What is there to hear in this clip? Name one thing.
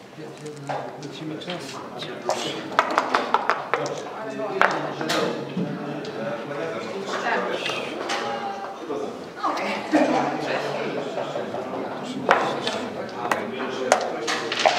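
Dice rattle in a cup.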